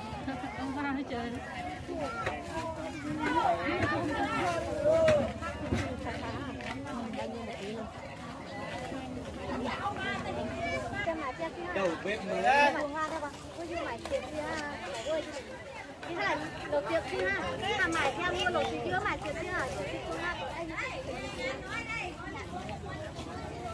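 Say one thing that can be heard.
Two women talk with each other nearby, in a lively way.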